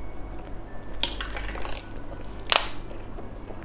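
A young woman bites and crunches hard candy close to a microphone.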